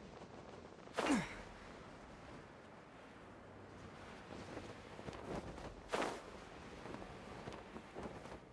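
A glider's wings whoosh through the air.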